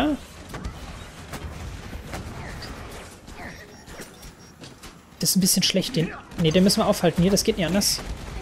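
A futuristic gun fires in sharp bursts.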